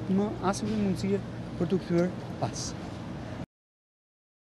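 A middle-aged man speaks firmly into microphones.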